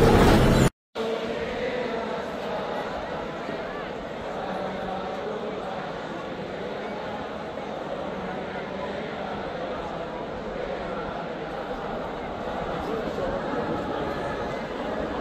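A large crowd sings and chants together outdoors, heard from a distance.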